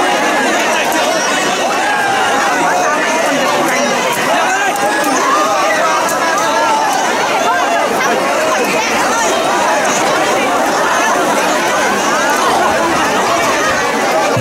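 A large outdoor crowd of men and women chatters and shouts in a loud hubbub.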